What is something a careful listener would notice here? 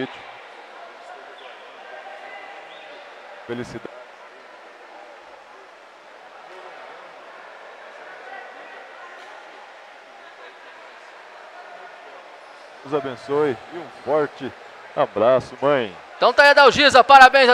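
A crowd murmurs faintly in a large echoing hall.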